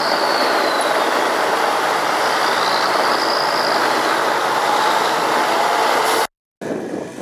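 Heavy truck engines rumble loudly as a convoy drives past.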